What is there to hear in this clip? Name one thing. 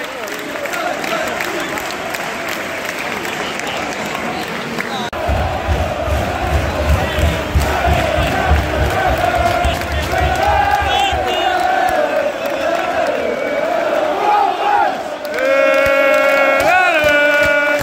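A large stadium crowd chants and sings loudly in the open air.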